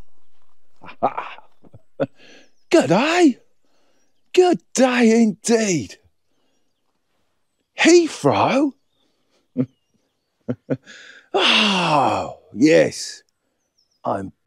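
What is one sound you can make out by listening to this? An elderly man talks with animation close to the microphone.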